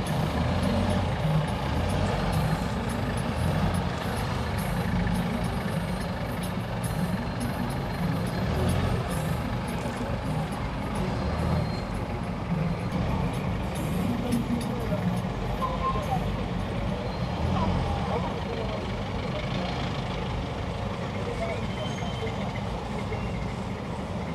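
Engines of buses and minibuses idle and rumble nearby in slow city traffic.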